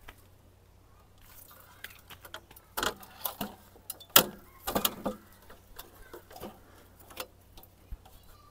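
A metal ladder clanks and knocks as it is set against a tree.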